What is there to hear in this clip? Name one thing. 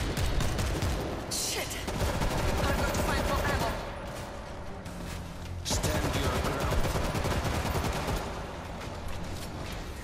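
A horde of zombies snarls and screeches.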